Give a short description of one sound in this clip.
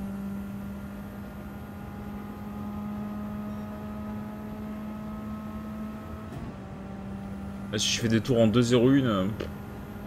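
A racing car engine drones steadily at high revs.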